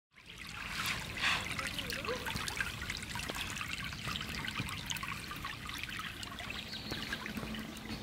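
Shallow water ripples and trickles over stones.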